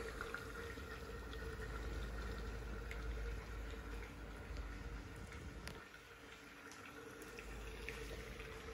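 Computer fans whir steadily.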